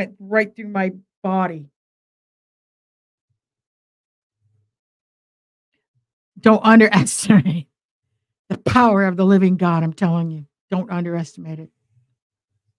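A middle-aged woman speaks with animation, close to a microphone, in short bursts with pauses.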